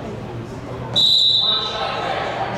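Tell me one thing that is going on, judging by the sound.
A referee's whistle blows sharply once.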